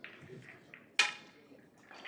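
A pool cue strikes a ball with a sharp click.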